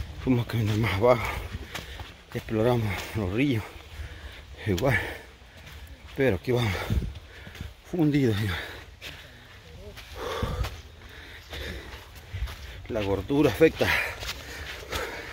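A middle-aged man talks calmly, close up.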